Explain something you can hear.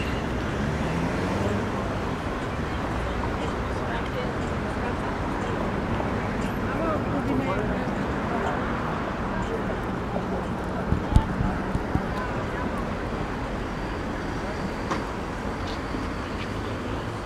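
Men and women murmur nearby as they pass.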